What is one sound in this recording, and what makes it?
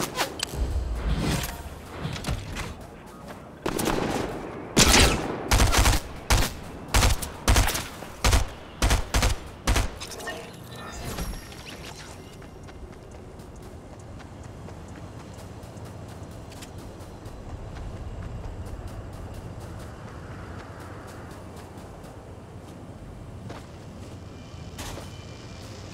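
Footsteps patter quickly on dry ground.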